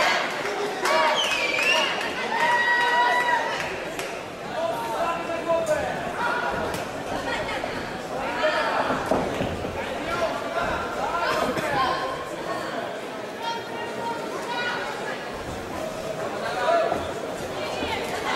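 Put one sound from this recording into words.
A crowd in a large echoing hall shouts and cheers.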